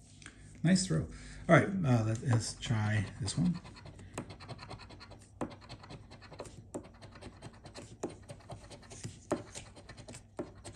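A coin scratches quickly across a paper card.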